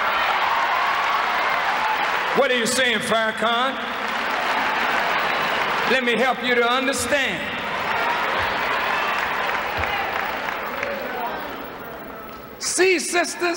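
A large crowd applauds and cheers in a big hall.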